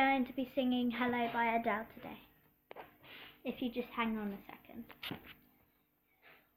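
A young girl talks close to a phone microphone.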